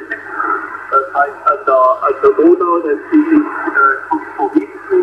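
A radio receiver plays a thin, narrow-sounding voice through its loudspeaker.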